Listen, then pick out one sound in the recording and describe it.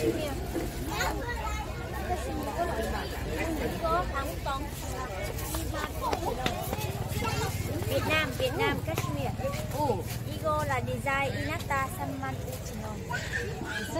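A woman vendor speaks calmly up close.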